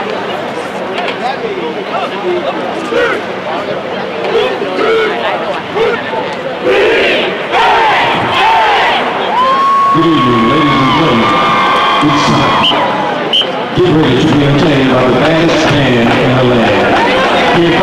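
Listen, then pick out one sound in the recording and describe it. A crowd murmurs and cheers in a large open stadium.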